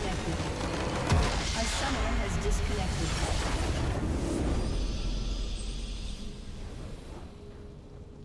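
A loud magical blast booms and rumbles, then fades away.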